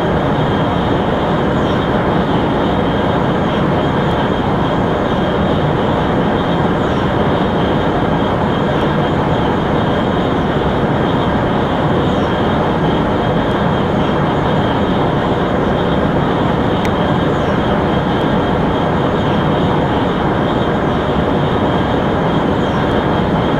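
A high-speed train roars steadily along the tracks.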